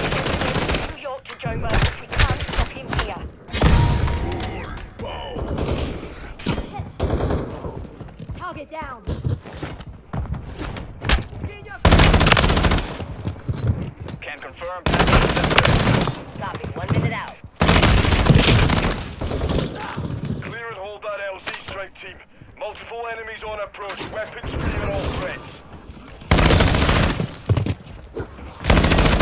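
Gunfire rattles in loud bursts.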